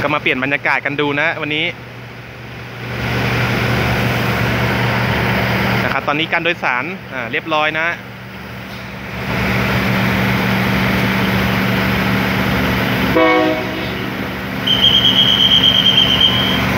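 A diesel train engine rumbles steadily close by.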